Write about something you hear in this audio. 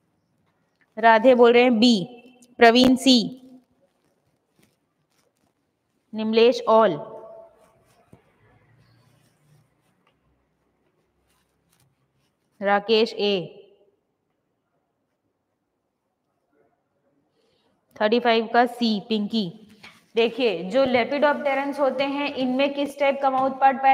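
A young woman speaks in short bursts, close to a microphone, with pauses between.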